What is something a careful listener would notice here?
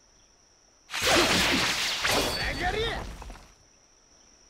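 A sword slashes through the air with a sharp whoosh.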